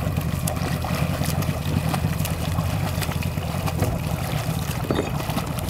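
A swimmer's feet kick and churn the water.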